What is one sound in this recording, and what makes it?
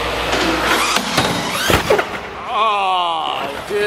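A toy car lands hard with a thud.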